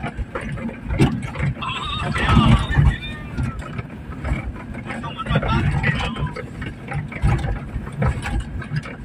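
A vehicle's body rattles and knocks over bumps.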